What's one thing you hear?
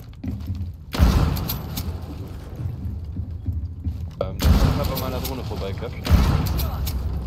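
A rifle fires loud single shots with a ringing echo.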